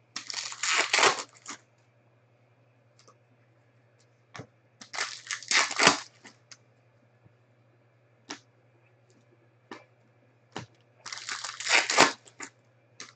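A plastic wrapper crinkles and tears in bursts close by.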